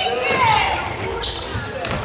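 A ball is kicked hard in a large echoing hall.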